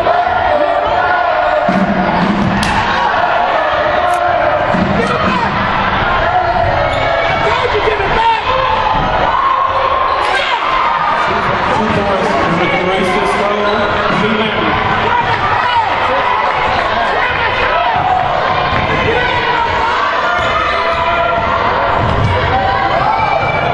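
A crowd of spectators chatters and cheers in a large echoing gym.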